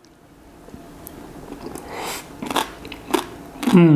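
A man hums with pleasure while eating.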